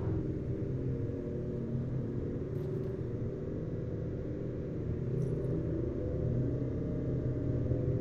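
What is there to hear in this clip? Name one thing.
Tyres roll on a smooth road.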